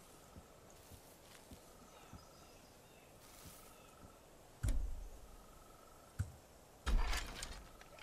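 Leafy bushes rustle and swish as someone pushes through them.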